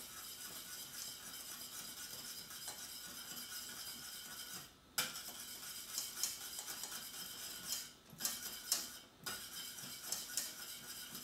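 A thick sauce bubbles and sizzles in a pan.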